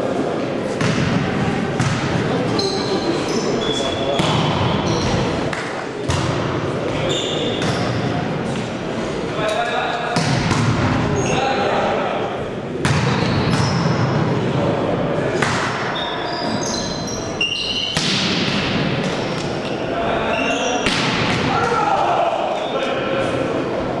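A volleyball thuds as players strike it, echoing in a large hall.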